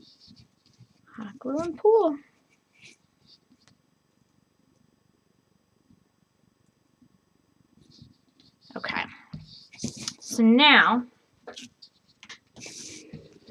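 Fabric rustles and crinkles softly as it is folded by hand.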